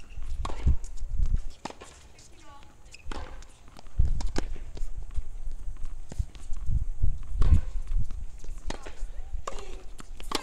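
A tennis ball bounces on a hard court a few times.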